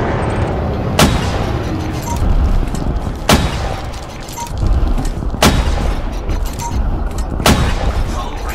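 Cannon shots crack out in quick bursts.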